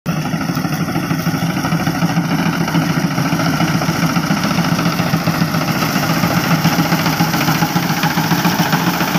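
A tractor engine rumbles steadily, drawing closer.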